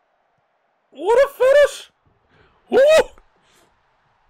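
A young man cries out excitedly close to a microphone.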